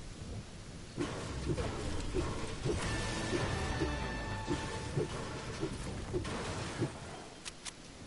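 A pickaxe strikes and smashes through wood and metal debris, with repeated sharp knocks.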